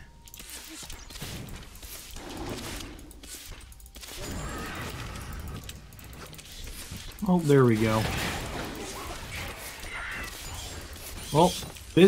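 Fighting sound effects clash and thud in a game.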